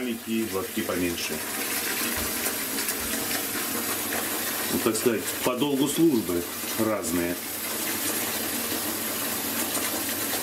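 Water trickles from a tap into a tub.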